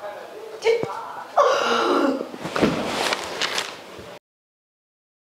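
A young woman sobs loudly.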